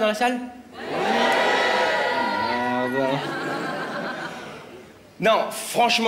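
An audience laughs in a large hall.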